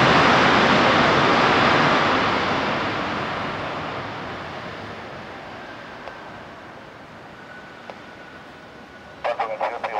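A jet airliner's engines roar loudly as it rolls down the runway, slowly fading into the distance.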